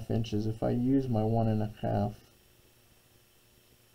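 A pencil scratches along a ruler on paper.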